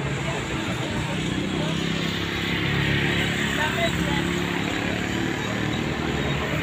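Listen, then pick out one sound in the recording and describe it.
A car engine idles close by.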